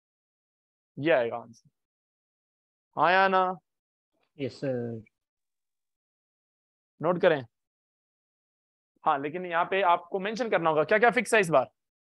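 A young man speaks calmly through a microphone, in short bursts with pauses.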